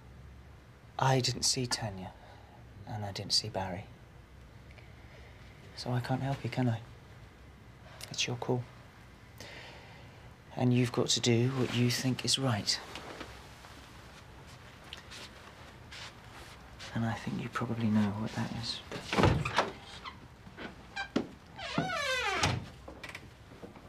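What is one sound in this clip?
A woman speaks softly and calmly close by.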